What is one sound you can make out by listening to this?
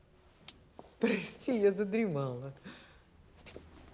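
A young woman speaks softly and apologetically nearby.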